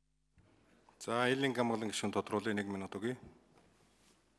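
A middle-aged man speaks firmly into a microphone.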